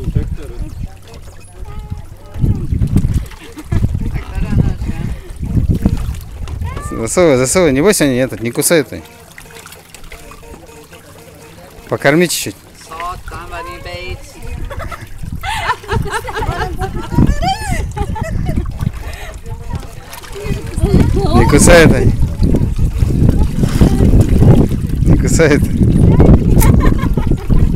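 Crowded fish thrash and splash at the water's surface.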